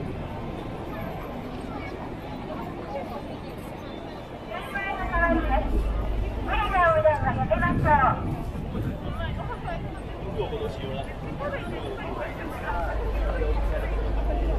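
A busy crowd murmurs and chatters all around outdoors.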